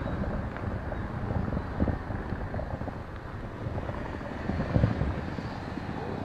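Footsteps crunch through snow outdoors.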